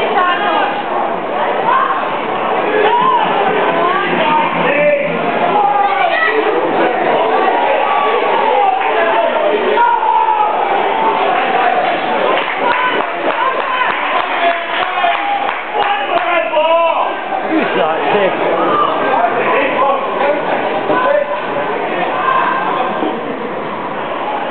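A large crowd sings and cheers in an open stadium.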